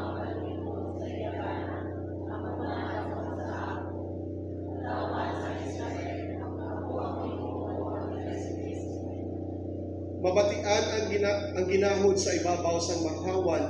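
A man speaks steadily over a microphone and loudspeakers in an echoing room.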